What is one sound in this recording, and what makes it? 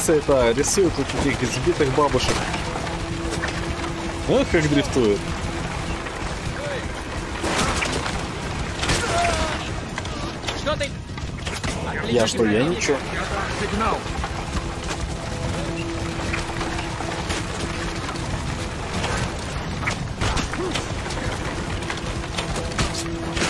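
Horses gallop over sand.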